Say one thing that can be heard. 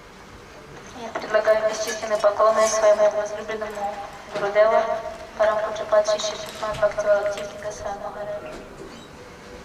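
A man reads aloud nearby in a steady, sing-song voice, then falls silent.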